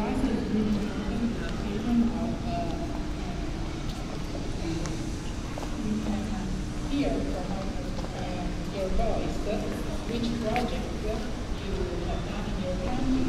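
A crowd of men and women chat nearby.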